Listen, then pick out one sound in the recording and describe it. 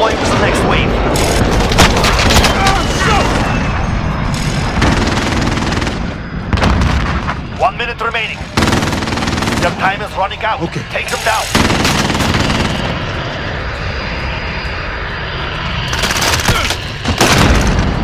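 Gunshots crack sharply, several times.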